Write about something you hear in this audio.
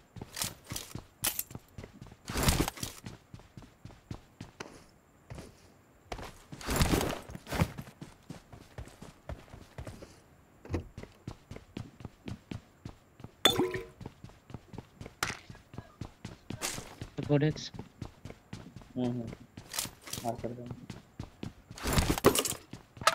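Quick footsteps patter across a hard floor.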